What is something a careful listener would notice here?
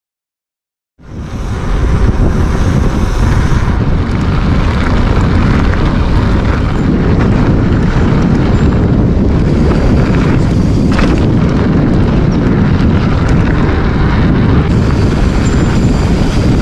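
Wind rushes loudly past while riding outdoors.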